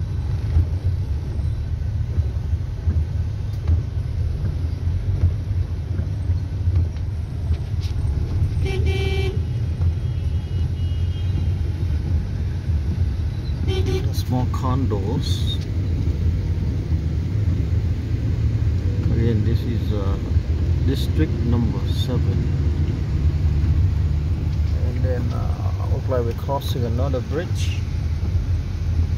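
Rain patters on a windscreen.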